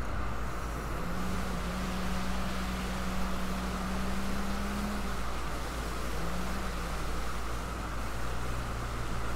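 Water splashes and rushes against a moving boat's hull.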